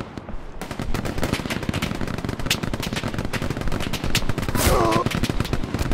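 Rapid gunfire crackles all around.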